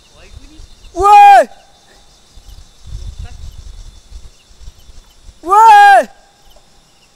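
A young man calls out loudly in long, falling cries close by.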